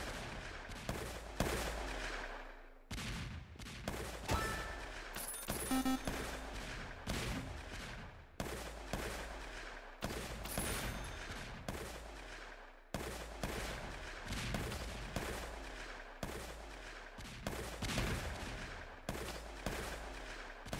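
Game explosions boom again and again.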